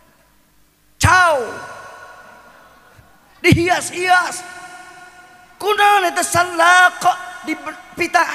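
A man preaches loudly into a microphone through loudspeakers, in short bursts that echo in a large hall.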